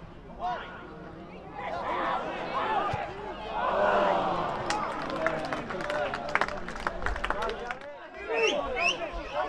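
Men shout outdoors.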